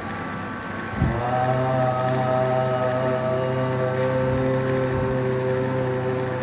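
A man hums a long, steady low note in an echoing room.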